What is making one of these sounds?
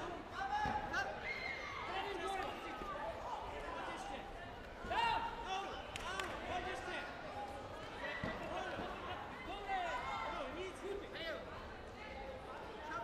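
Spectators shout and cheer throughout, in a large echoing hall.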